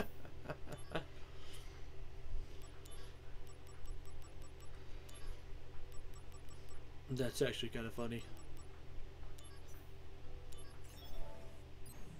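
Soft electronic blips sound as menu options are selected.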